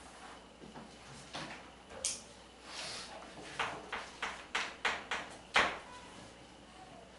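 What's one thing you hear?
Chalk taps and clicks against a board.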